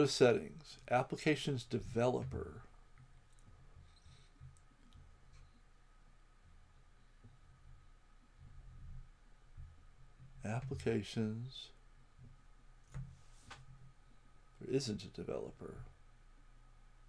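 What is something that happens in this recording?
A man speaks calmly into a nearby microphone, in short bursts with pauses.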